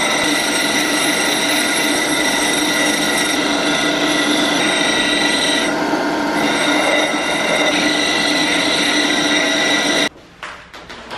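A power tool grinds metal with a steady whine.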